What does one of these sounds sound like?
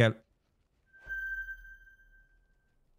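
A bright electronic chime rings out and slowly fades.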